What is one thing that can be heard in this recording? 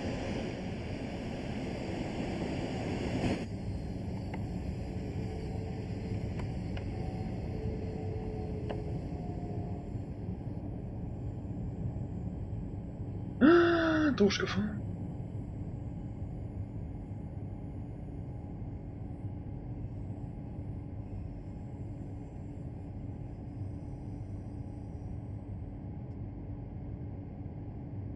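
A train rumbles along the rails and gradually slows down.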